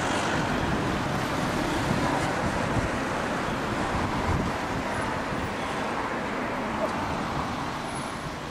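Traffic hums steadily on a street outdoors.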